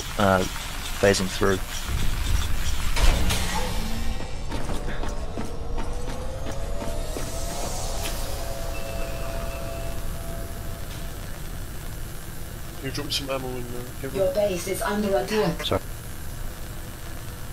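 An electric beam buzzes and crackles.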